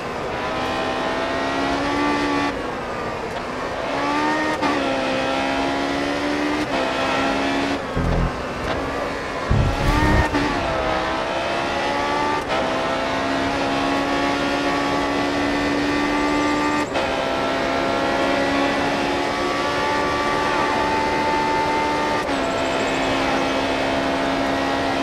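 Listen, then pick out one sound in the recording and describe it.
A racing car engine whines loudly, rising in pitch through the gears and dropping as it slows.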